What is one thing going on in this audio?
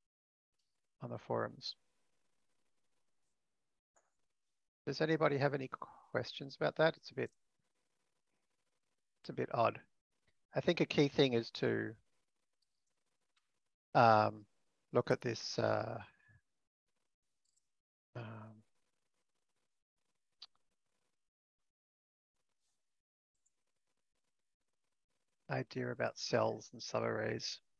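A man speaks calmly through an online call, in short bursts with pauses.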